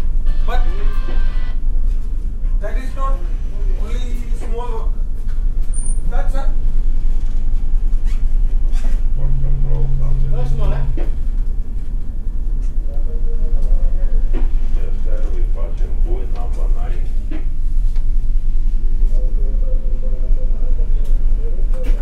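A man talks nearby over the wind.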